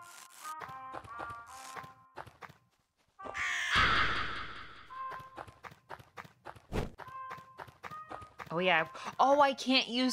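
Short, bright chiming game sound effects play in quick bursts.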